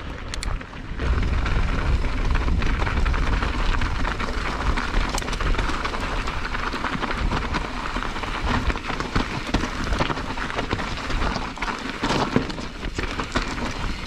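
Wind rumbles past close by.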